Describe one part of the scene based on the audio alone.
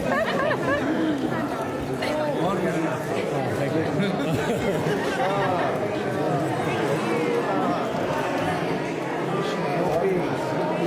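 A crowd of men and women sings and chants together loudly.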